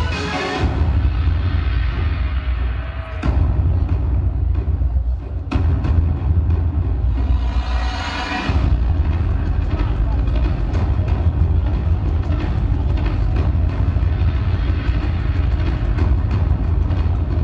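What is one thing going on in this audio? Loud dance music with a heavy thumping beat plays over loudspeakers in a large hall.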